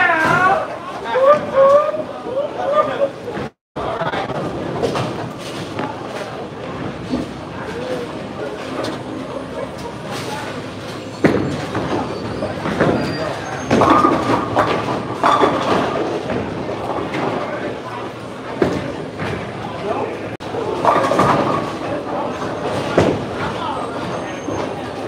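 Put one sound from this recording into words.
Men chat in a large, echoing hall.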